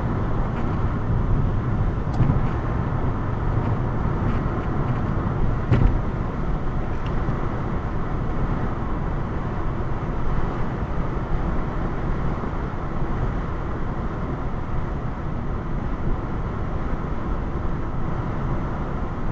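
Tyres roar steadily on the road.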